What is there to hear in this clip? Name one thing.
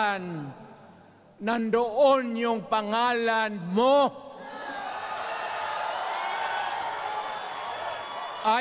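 An elderly man speaks forcefully into a microphone over loudspeakers.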